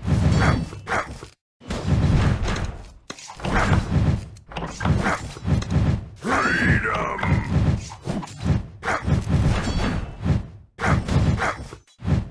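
Swords clash and metal rings in a busy battle.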